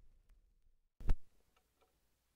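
A stylus thumps softly onto a spinning record.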